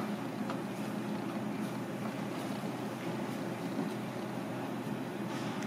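Fingers press and pat food into dry flour with soft dull thumps.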